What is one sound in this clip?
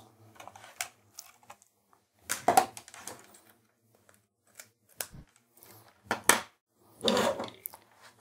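Plastic cables rustle and click as hands handle them.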